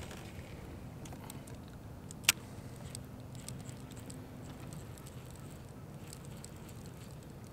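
A fishing reel clicks and whirs as line is reeled in.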